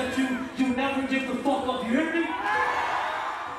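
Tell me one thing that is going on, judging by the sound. A woman sings loudly through speakers in a large hall.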